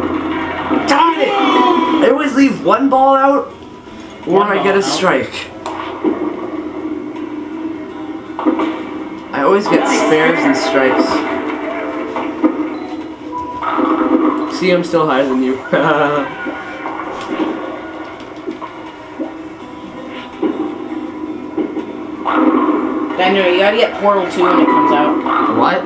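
Bowling pins crash and clatter through a television speaker.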